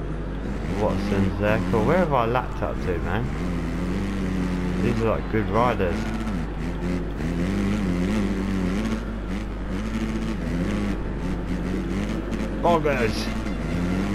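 Other motorcycles rev loudly as they pass close by.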